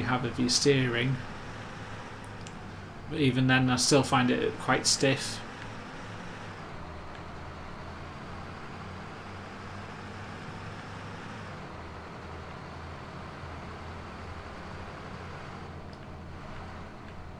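A city bus engine drones as the bus drives along.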